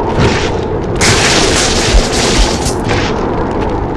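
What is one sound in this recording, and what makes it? A blade whooshes through the air in quick swings.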